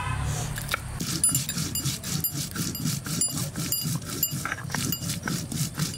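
A blade scrapes and chops on a stone slab.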